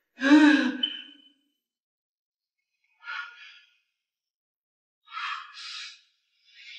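A middle-aged woman cries out in distress, then speaks in a shaky, upset voice close by.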